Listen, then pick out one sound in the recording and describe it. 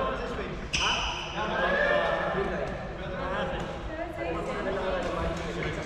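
Sports shoes squeak sharply on the court floor.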